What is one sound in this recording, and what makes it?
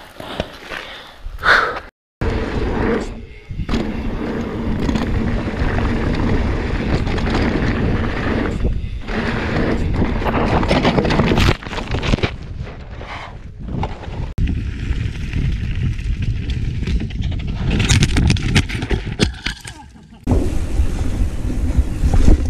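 Bicycle tyres rattle and crunch over a rough dirt trail.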